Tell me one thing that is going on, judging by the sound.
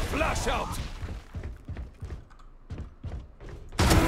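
Gunshots crack rapidly.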